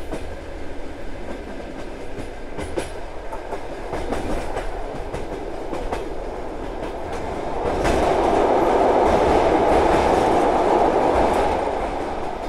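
A train rumbles and clatters steadily along the tracks.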